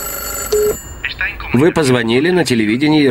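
A middle-aged man speaks close by into a telephone.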